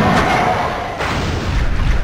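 Electricity crackles and bursts loudly.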